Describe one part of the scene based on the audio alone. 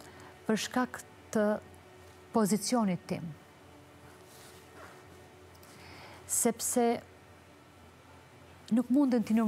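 A woman speaks calmly into a microphone, in short phrases with pauses.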